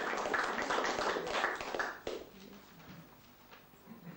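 High heels click across a wooden floor.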